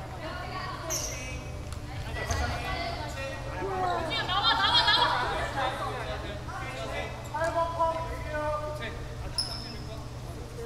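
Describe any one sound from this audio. Sneakers squeak sharply on a floor.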